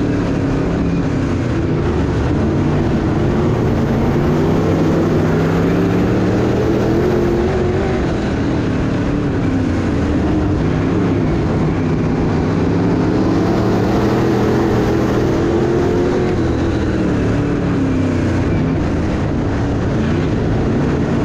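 A race car engine roars loudly up close, its pitch rising and falling as the car speeds up and slows.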